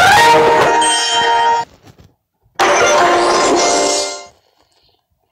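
A bright, cheerful game jingle plays twice.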